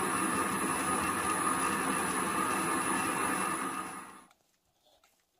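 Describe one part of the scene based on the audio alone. A power drill whirs loudly as it bores into metal.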